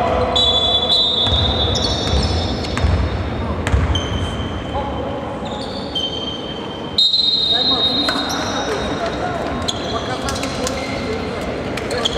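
Sneakers squeak sharply on a court floor in a large echoing hall.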